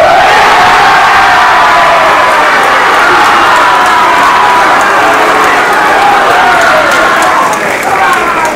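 A crowd of young men cheers and chants loudly.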